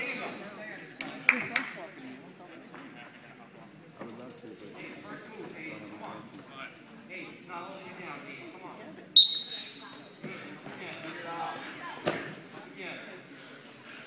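Men shout and call out, echoing in a large gym.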